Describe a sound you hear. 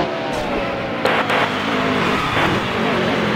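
A race car scrapes and bangs against a wall.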